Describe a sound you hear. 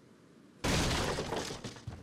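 A wooden crate smashes apart.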